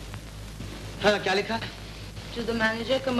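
A young woman speaks briskly.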